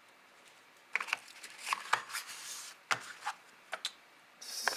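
Packaging rustles and crinkles as it is handled.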